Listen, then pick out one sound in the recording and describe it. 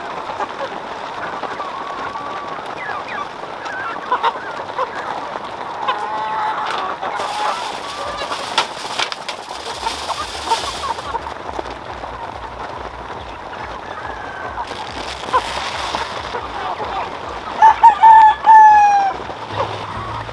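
Chickens cluck and chirp nearby.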